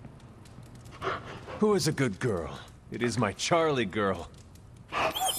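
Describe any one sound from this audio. A man speaks warmly and playfully, close by.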